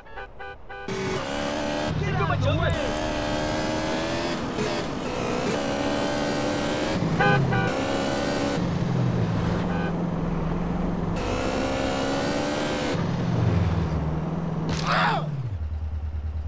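A motorcycle engine revs and roars as it speeds along.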